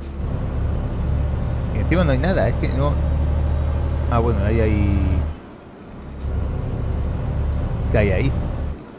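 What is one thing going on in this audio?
A truck engine drones steadily at a low pitch.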